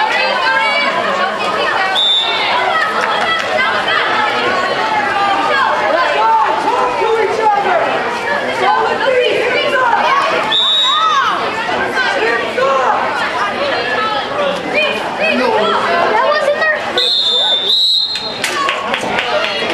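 A crowd of spectators chatters and calls out close by.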